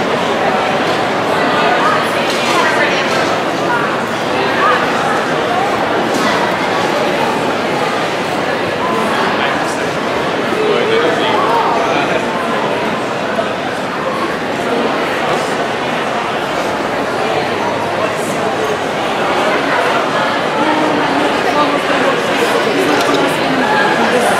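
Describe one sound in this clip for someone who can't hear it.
Footsteps shuffle on a hard floor.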